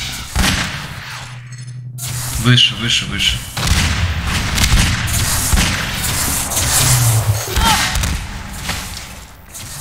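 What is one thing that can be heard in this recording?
Guns fire in loud, rapid shots.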